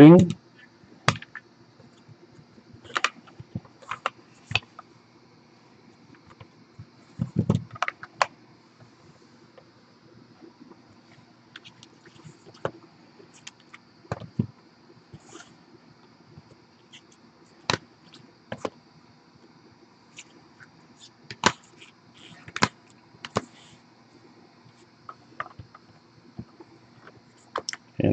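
Hard plastic card cases click and clack as they are set down on a table.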